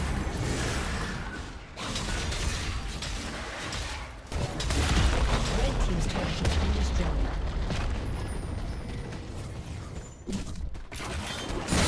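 Video game battle effects crackle and boom with spell blasts and hits.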